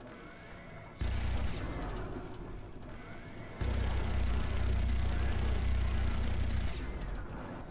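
A heavy gun fires in loud, rapid bursts.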